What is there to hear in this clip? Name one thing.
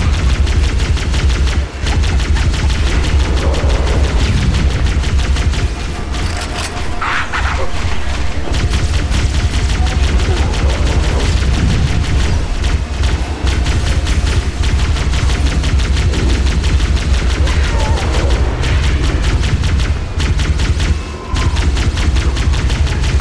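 A hovering vehicle engine hums steadily.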